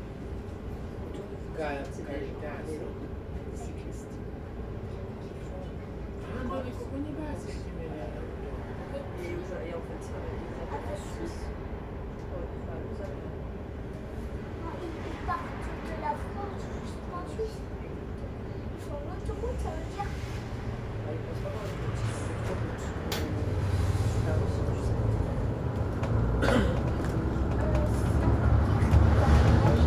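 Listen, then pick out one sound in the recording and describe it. A bus engine idles in slow traffic, then rumbles louder as the bus pulls away.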